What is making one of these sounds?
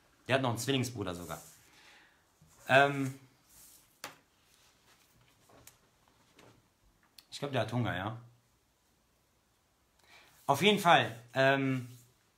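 A man speaks calmly and close to the microphone, in short phrases with pauses.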